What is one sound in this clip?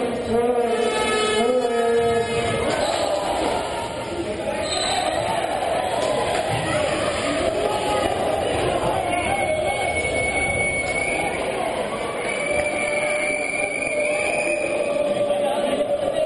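Horns blare from the crowd.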